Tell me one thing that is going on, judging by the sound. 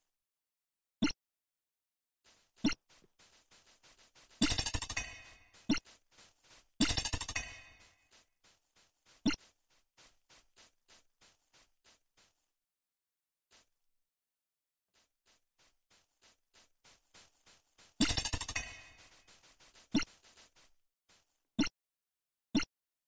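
Short video game menu clicks and whooshes sound as menu windows open and close.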